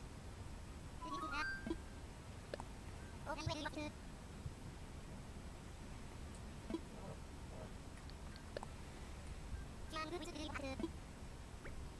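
A video game plays short chirpy babbling sounds.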